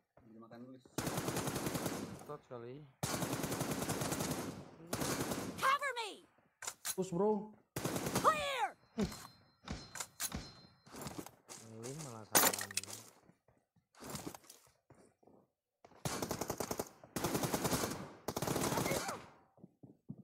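Rapid gunfire bursts loudly in short volleys.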